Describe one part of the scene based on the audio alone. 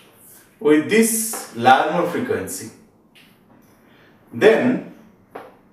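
A man speaks calmly and explains, close to a microphone.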